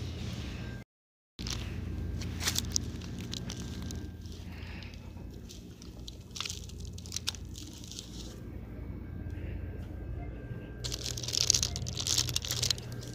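Plastic packaging crinkles and rustles under a hand.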